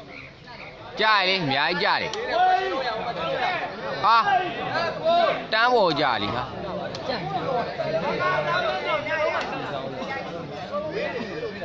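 Crowd members shout and cheer loudly.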